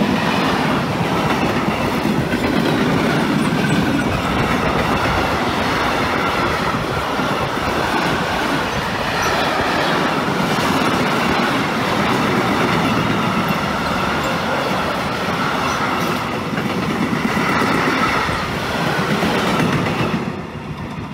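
Train wheels squeal and screech on the rails.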